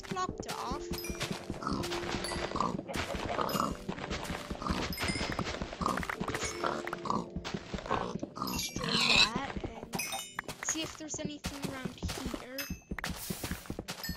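Blocks are dug with repeated soft crunching knocks.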